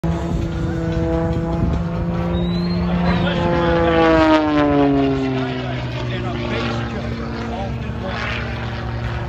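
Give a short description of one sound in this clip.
A propeller plane engine drones overhead, its pitch falling as it passes.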